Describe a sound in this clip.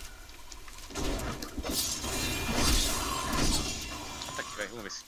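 Game combat effects crash and whoosh loudly.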